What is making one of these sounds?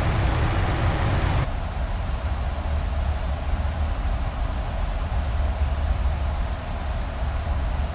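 A jet engine drones with a low, steady rumble.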